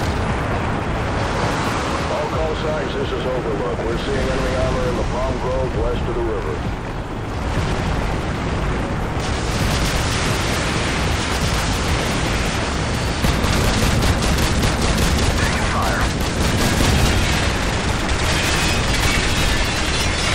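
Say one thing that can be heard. A helicopter's rotor thumps steadily.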